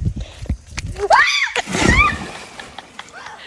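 Water splashes as a person jumps into a pool.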